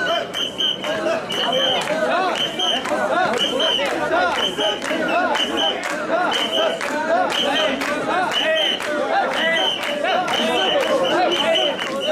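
A large crowd of men chants loudly in a steady rhythm.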